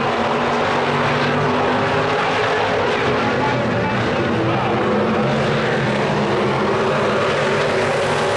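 Several V8 stock cars roar past at full throttle on a dirt track.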